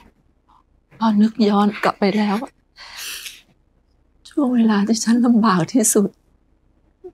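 A young woman speaks softly and pleadingly close by.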